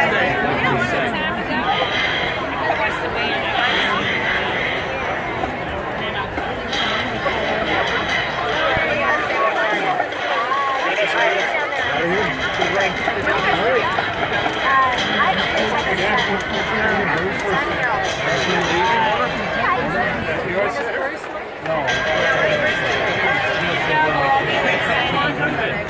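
A marching band plays in the distance.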